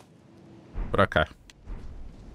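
A game menu closes with a sharp chime.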